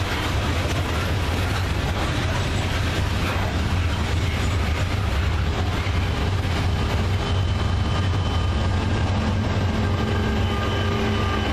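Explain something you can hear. Loaded coal hopper cars of a freight train rattle and clatter over the rails.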